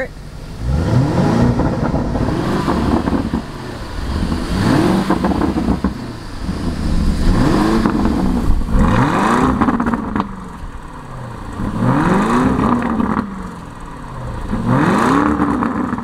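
A sports car engine revs hard again and again, each roar rising and then falling away.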